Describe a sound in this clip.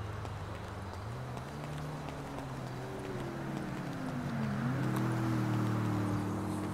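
A car engine hums and its pitch rises and falls.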